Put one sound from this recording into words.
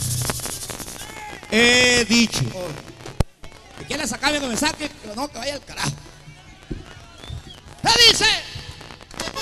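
A man sings loudly into a microphone, heard through a loudspeaker.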